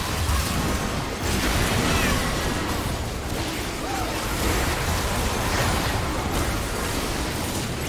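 Magic spell effects crackle, whoosh and boom in a busy battle.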